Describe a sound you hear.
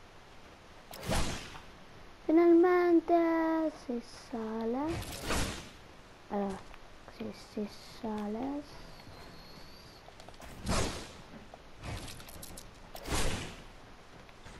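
Game building pieces snap into place with short, sharp whooshes.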